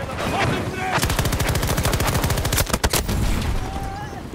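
A machine gun fires a rapid burst of shots.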